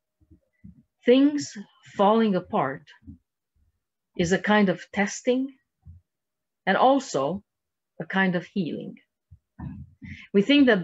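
A middle-aged woman speaks calmly over an online call, pausing between phrases.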